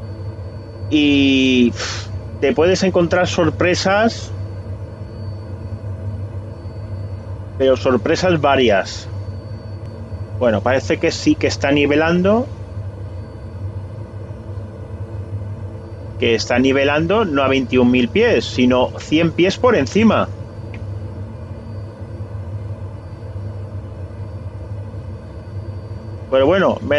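A turboprop engine drones steadily.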